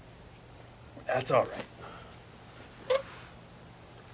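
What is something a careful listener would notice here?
A folding camp chair creaks as a man gets up from it.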